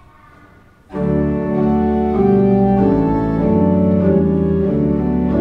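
An organ plays loud sustained chords.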